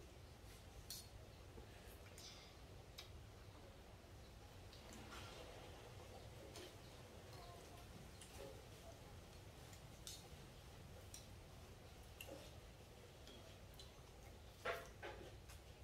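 Spoons and chopsticks clink against bowls.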